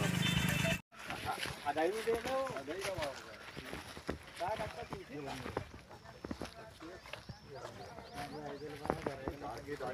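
Men talk quietly nearby while walking.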